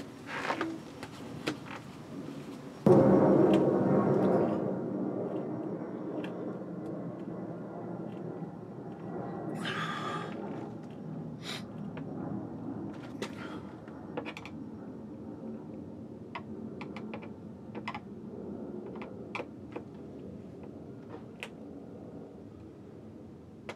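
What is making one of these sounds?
A screwdriver clicks and scrapes against a ceiling fitting.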